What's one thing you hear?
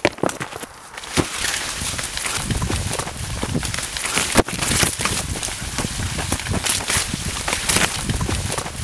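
Footsteps crunch through dense corn stalks, leaves rustling and swishing.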